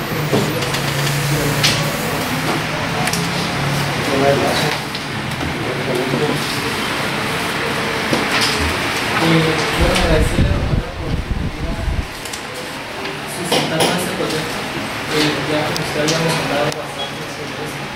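A woman speaks calmly at a distance.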